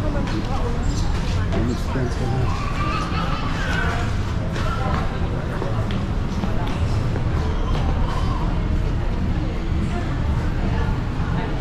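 A crowd of people chatter in the distance.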